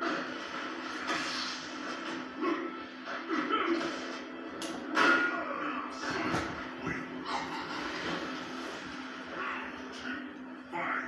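Fighting game sound effects of punches and impacts play from a television speaker.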